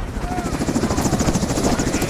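A helicopter hovers overhead with a thudding rotor.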